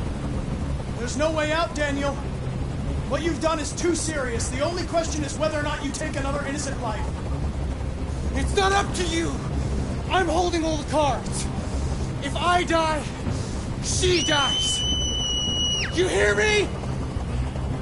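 A man speaks tensely and threateningly, close by.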